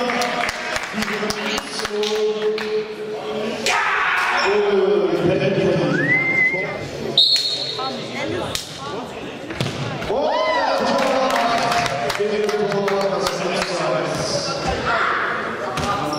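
Young players shout and cheer with excitement.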